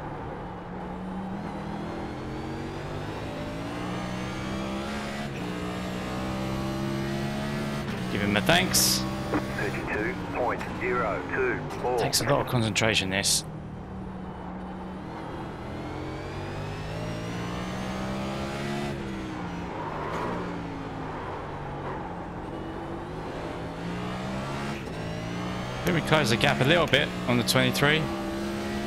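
A race car engine roars steadily, rising and falling in pitch as the car shifts gears and brakes.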